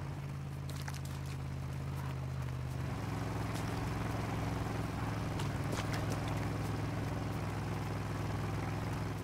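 Footsteps rustle through tall grass at a run.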